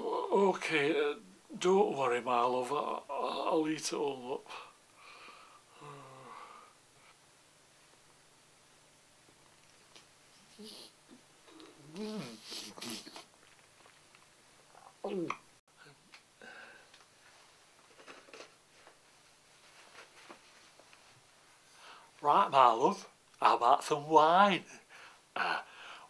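A middle-aged man speaks with animation close to the microphone.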